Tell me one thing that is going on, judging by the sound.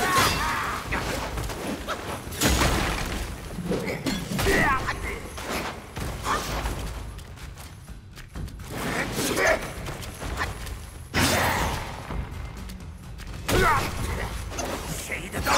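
A large creature growls and snarls.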